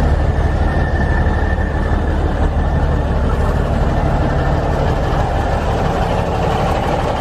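A truck engine idles with a steady, loud rumble close by.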